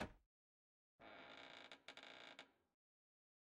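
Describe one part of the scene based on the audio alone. A door creaks open slowly.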